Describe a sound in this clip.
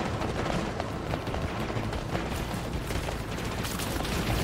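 Energy weapons fire with sharp zapping bursts.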